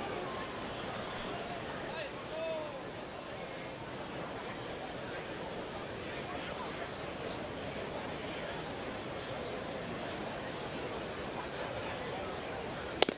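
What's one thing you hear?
A stadium crowd murmurs outdoors.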